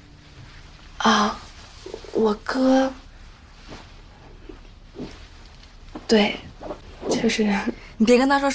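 A young woman speaks softly and with feeling, close by.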